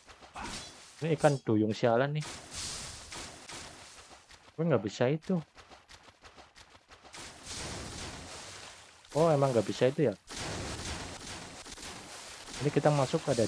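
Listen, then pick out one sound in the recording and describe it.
A young man talks with animation close to a microphone, in short bursts.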